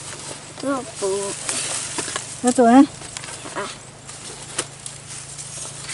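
Large leaves rustle and crinkle as they are handled.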